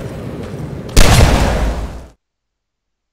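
A loud explosion booms close by and its rumble fades.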